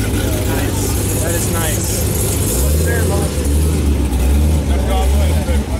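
A supercharged V8 car idles with a deep, lumpy rumble.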